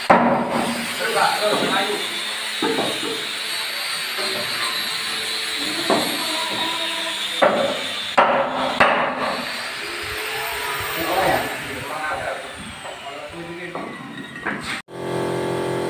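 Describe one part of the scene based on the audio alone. Several men talk to each other nearby.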